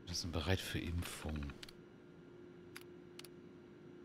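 A computer terminal clicks and beeps.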